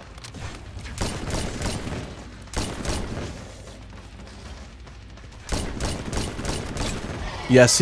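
Rapid gunfire bursts from a video game.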